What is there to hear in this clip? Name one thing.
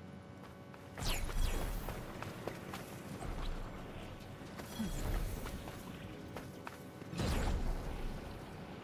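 A magical whoosh bursts out loudly.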